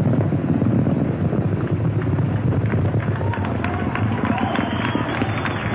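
A rocket roars with a deep, steady rumble far off.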